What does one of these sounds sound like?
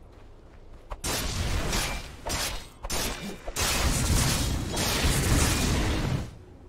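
Game weapons clash and spells burst in a noisy fantasy battle.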